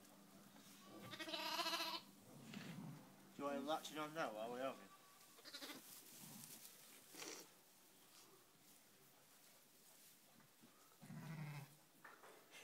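A sheep bleats loudly nearby.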